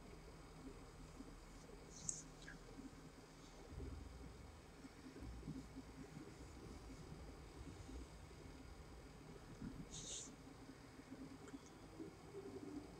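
A man speaks quietly and hesitantly close to a microphone.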